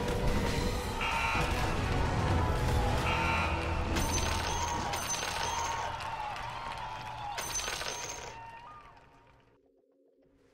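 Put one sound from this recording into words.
Game fighting sound effects clash and crackle, loud and busy, then fade.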